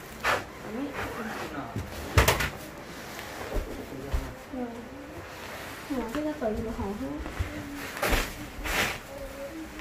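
A mattress rustles and bumps against a door frame as it is carried.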